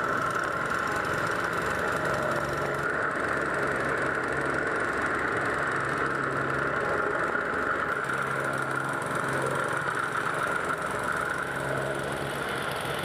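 A petrol engine on a plate compactor runs loudly and steadily.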